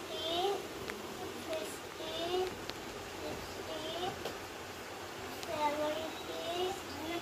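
A young boy chants in a sing-song voice close by.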